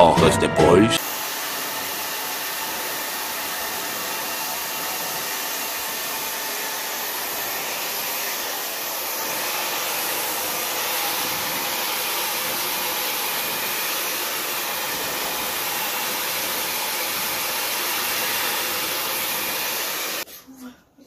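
A hair dryer blows with a steady roar close by.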